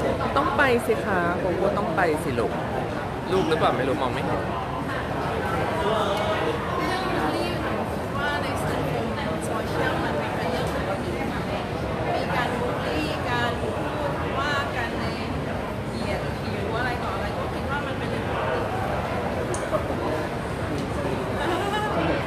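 A young woman speaks calmly into a microphone close by.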